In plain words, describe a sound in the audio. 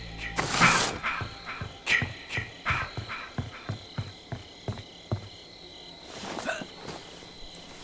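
Footsteps thud quickly across a wooden floor.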